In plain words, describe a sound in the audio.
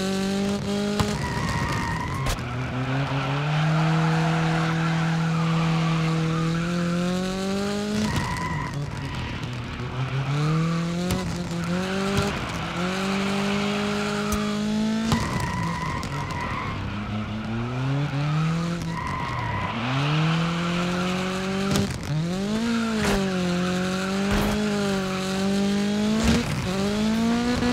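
A racing car engine revs high and drops as gears shift.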